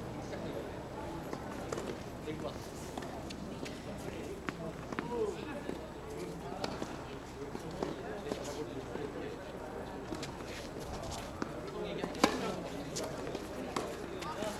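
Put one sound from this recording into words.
A tennis ball is struck by rackets with sharp pops, back and forth.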